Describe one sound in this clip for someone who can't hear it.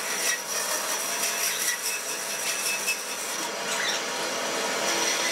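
A band saw whines as its blade cuts through wood.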